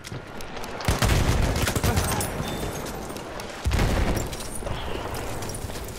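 Loud explosions boom nearby.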